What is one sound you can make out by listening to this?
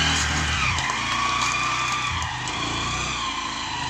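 A motorcycle pulls away and rides off.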